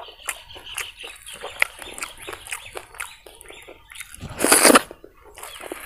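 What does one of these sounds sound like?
Wet food squelches as a hand mixes it.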